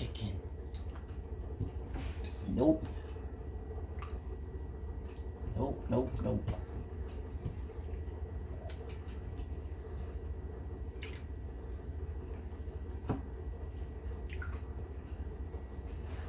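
Fingers squish and splash chicken in beaten egg.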